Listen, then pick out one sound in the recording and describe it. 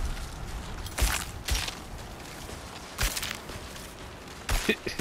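Blows land with sharp thuds in a fight.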